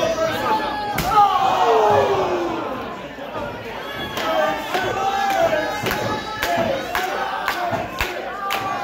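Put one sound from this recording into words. Bodies thud onto a wrestling ring's canvas.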